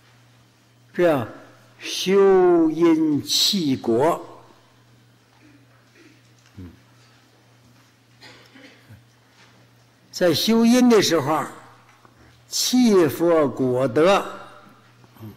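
An elderly man speaks slowly and calmly through a microphone, with pauses.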